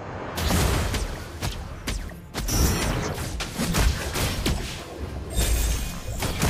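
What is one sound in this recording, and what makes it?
Sharp hits and blasts strike again and again.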